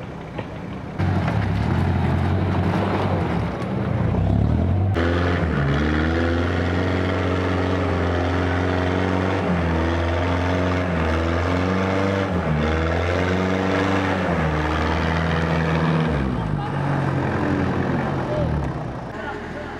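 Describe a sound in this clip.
A heavy off-road engine roars and revs hard, rising and falling in pitch.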